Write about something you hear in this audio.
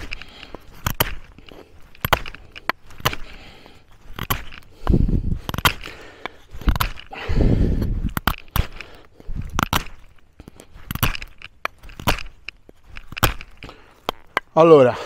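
A knife blade clicks and taps against wood.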